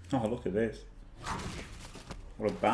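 A heavy crunching impact lands.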